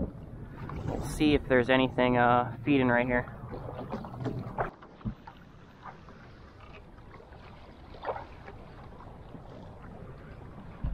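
Small waves lap against a kayak hull.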